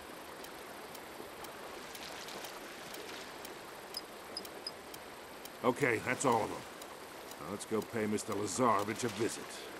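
A person wades through shallow water.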